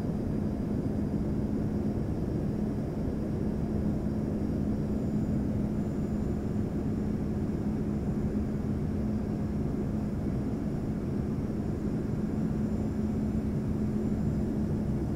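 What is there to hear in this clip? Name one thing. Jet engines roar steadily with a low hum from inside an airliner cabin.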